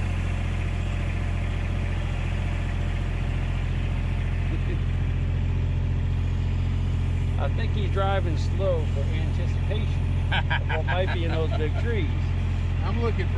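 A vehicle engine hums steadily as it drives over bumpy ground.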